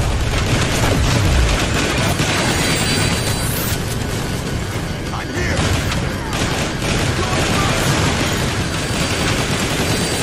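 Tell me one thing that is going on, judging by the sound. Explosions boom and crash.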